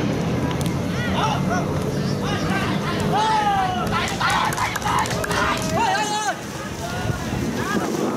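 Excited voices shout as a goal is scored.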